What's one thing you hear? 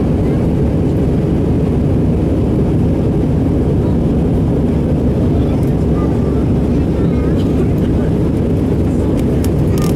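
Jet engines roar from inside the cabin of an airliner climbing after takeoff.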